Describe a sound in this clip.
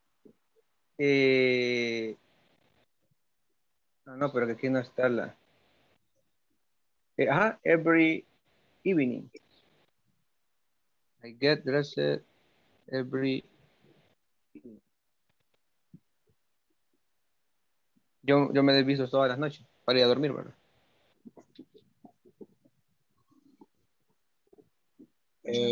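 A man speaks in bursts over an online call, with pauses between phrases.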